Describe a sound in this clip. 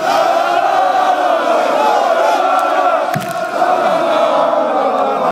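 A large crowd of fans chants loudly and close by in an open stadium.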